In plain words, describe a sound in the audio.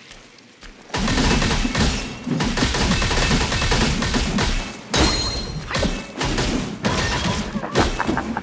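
A staff strikes a creature with heavy blows and bursts of impact.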